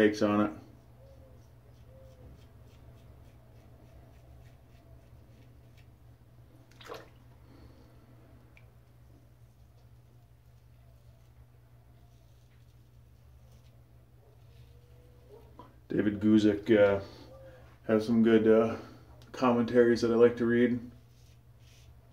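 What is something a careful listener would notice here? A safety razor scrapes through lathered stubble.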